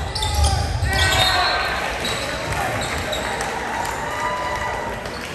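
Young men cheer together after a point.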